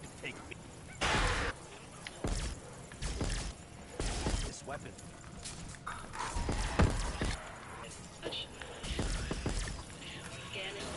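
A heavy weapon fires in loud, booming bursts.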